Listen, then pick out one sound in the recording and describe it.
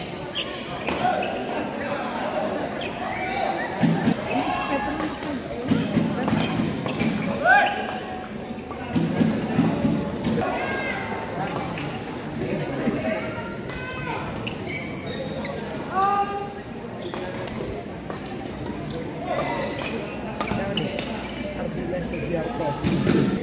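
Rackets strike a shuttlecock back and forth with sharp pops in an echoing hall.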